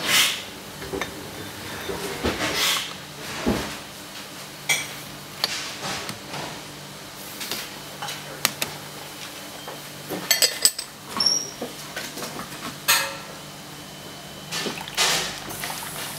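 Porcelain cups and lids clink and knock against each other.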